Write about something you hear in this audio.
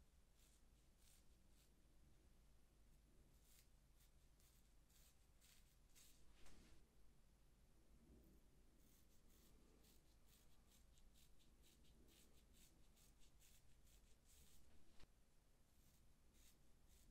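A razor scrapes in short strokes through hair and stubble.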